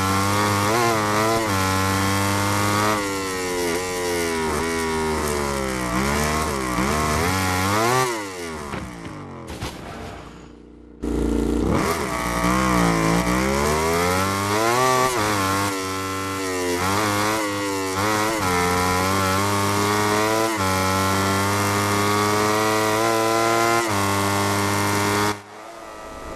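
A racing motorcycle engine screams loudly, rising and dropping in pitch as it shifts gears.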